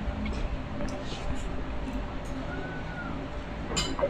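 A woman gulps down a drink.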